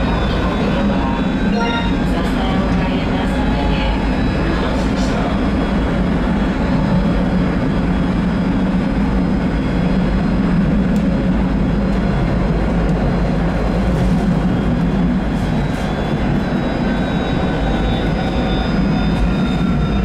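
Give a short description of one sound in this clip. A tram's motor hums and its wheels rumble steadily along the rails.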